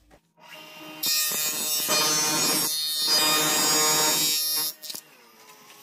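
A power saw whines loudly as it cuts through plastic.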